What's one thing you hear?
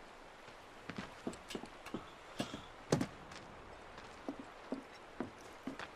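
Boots thud on wooden planks.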